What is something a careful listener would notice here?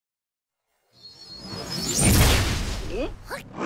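A cartoon creature shrieks loudly.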